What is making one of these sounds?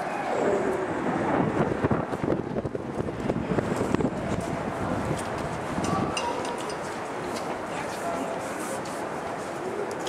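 People murmur and talk softly in a large echoing hall.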